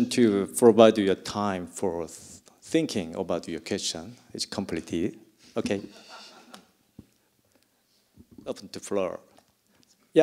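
A man speaks through a microphone in a large hall.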